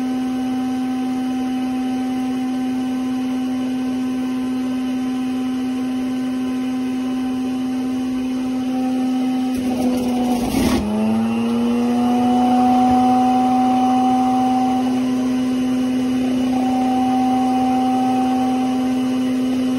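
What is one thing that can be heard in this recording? A juicer motor whirs steadily.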